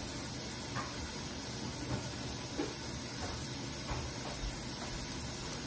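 Food sizzles steadily in a covered pan, with occasional soft pops.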